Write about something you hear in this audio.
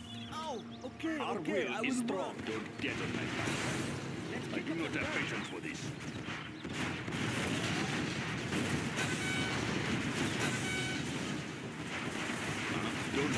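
Gunfire and explosions crackle in a loud battle.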